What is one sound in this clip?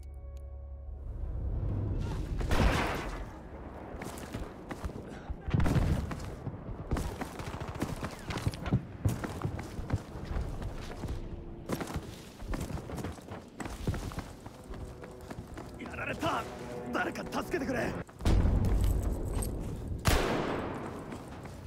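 Gunshots crack and thud in the distance.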